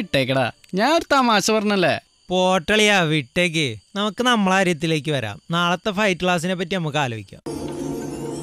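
A man speaks with feeling, close by.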